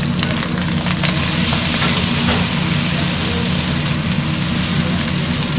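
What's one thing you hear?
Liquid pours into a hot pan and hisses loudly.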